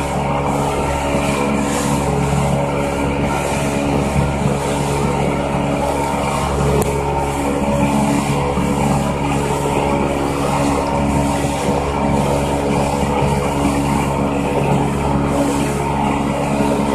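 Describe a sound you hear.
Water rushes and splashes against a moving boat's hull.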